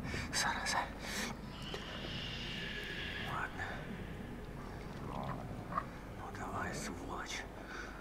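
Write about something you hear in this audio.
A young man mutters tensely to himself, close by.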